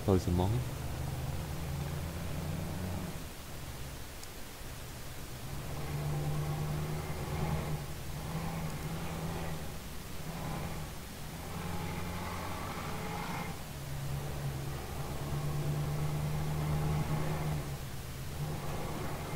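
A heavy truck engine rumbles steadily, rising and falling as it drives.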